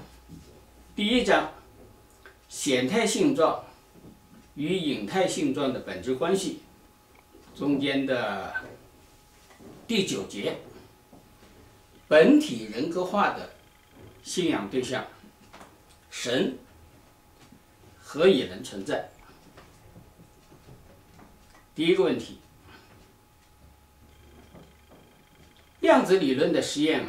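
An elderly man speaks calmly and steadily in short phrases, close by.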